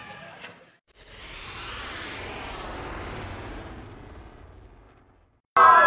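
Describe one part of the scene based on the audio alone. A small rocket ignites with a loud hiss and whooshes up into the sky.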